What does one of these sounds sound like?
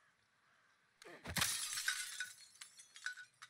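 A blade swishes and strikes with a heavy thud.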